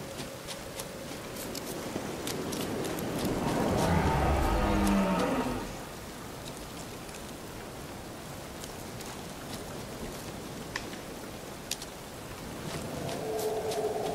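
Footsteps rustle through grass and undergrowth.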